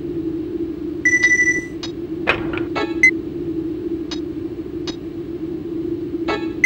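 Short electronic beeps and clicks sound as a menu is scrolled.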